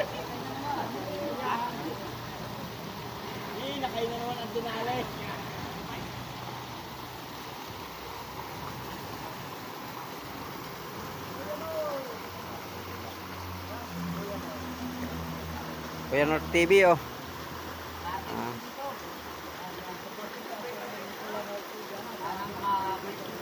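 Men talk and call out to each other nearby.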